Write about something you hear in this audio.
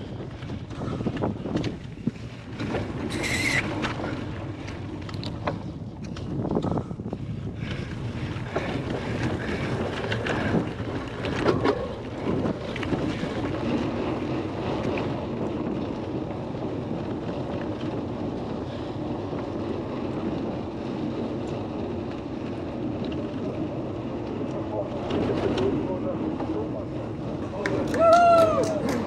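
Wind buffets and roars past close by.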